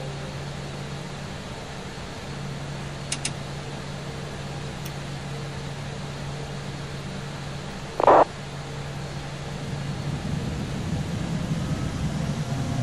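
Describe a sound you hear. An aircraft's engines hum steadily.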